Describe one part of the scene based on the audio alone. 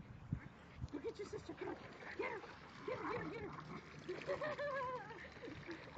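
A small dog whines and yaps in short, excited bursts.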